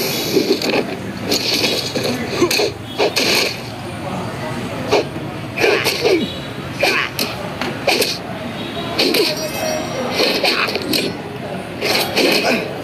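Heavy blows land with sharp, repeated smacks and clangs.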